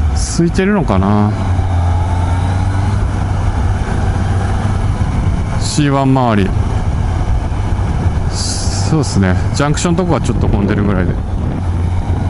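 A motorcycle engine revs up sharply and drops as gears change.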